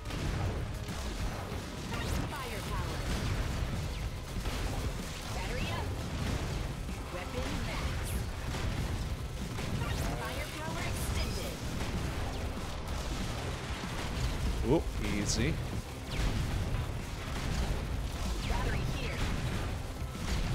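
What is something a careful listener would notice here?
Gunfire and blasts from a video game rattle constantly.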